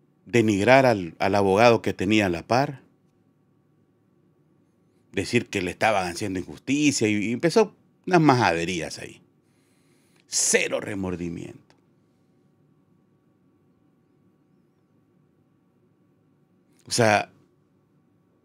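A middle-aged man speaks with animation into a close microphone, pausing now and then.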